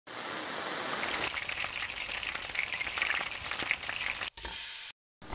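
A television hisses with static.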